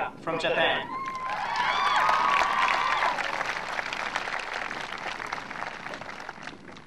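A large crowd of young people cheers and shouts outdoors, fading to a chatter.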